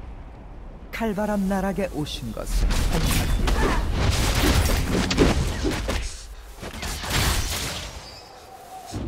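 Magic blasts and hits crackle and thump in a video game fight.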